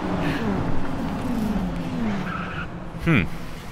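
A racing car engine idles and revs.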